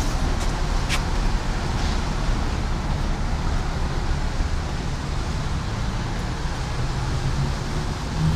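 Palm fronds rustle in the wind.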